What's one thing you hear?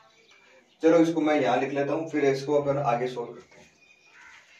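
A man speaks calmly close by, explaining.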